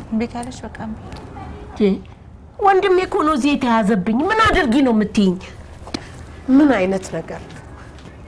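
A middle-aged woman speaks sharply and with emotion, close by.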